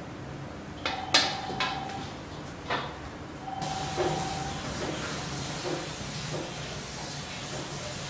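A metal tray clatters and scrapes on a wooden table.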